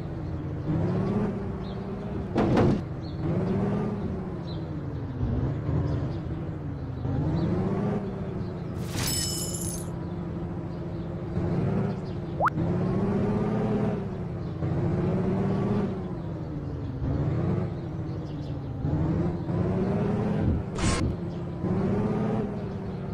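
A game vehicle's engine revs up and down repeatedly.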